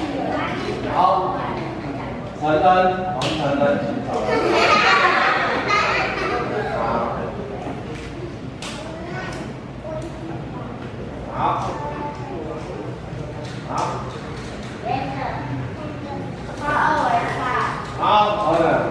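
A man speaks to a group of children in an echoing room.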